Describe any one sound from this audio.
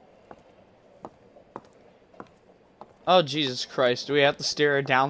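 High heels click on a hard floor.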